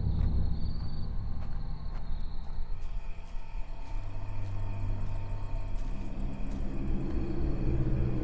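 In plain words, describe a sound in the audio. Footsteps crunch slowly on a dirt path.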